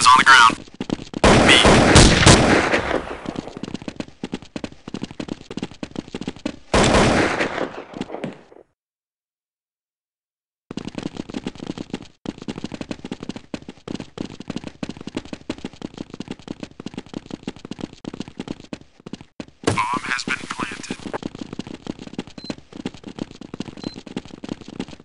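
Footsteps run quickly over stone.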